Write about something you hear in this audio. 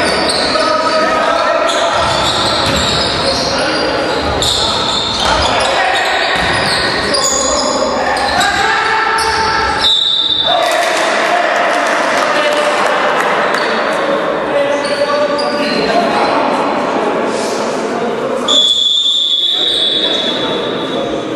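Men shout to each other across the court.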